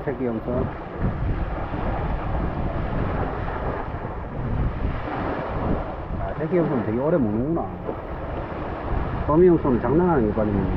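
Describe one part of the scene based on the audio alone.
Small waves wash onto a rocky shore.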